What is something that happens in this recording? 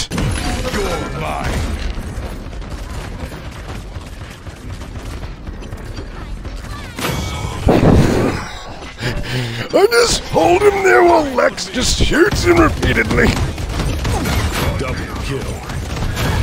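A heavy gun fires in bursts, with blasts and explosions.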